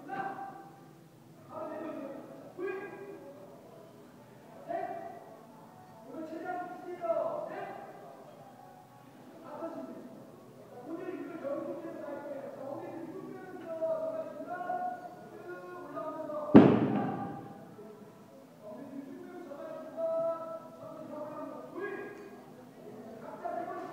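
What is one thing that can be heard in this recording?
A man talks in an echoing room.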